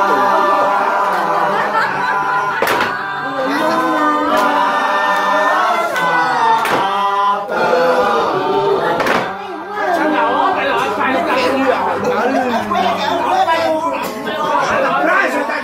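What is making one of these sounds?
Several men talk and laugh together in a room.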